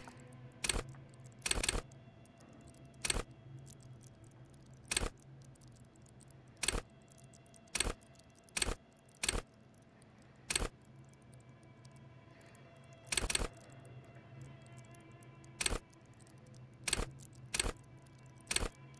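Short sharp interface clicks sound again and again as a menu selection moves.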